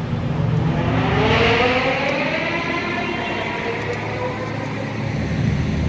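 A sports car engine revs loudly, then winds down.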